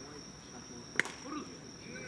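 A ball smacks sharply into a glove.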